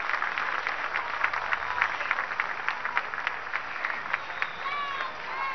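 A crowd claps outdoors.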